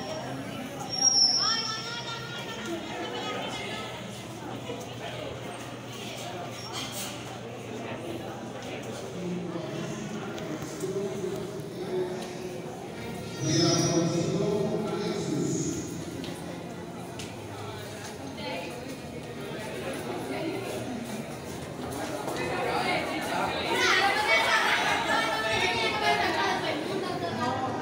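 A crowd of people chatters and murmurs.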